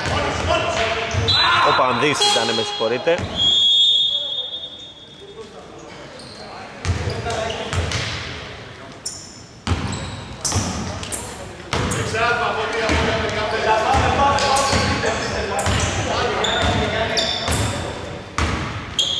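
Sneakers squeak on a hardwood court, echoing in a large empty hall.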